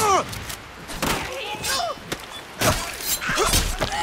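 A woman cries out in pain.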